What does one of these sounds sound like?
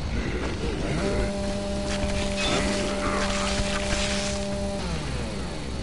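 A chainsaw engine idles with a steady droning hum.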